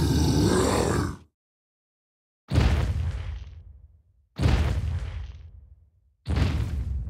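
A giant creature stomps with heavy booming thuds.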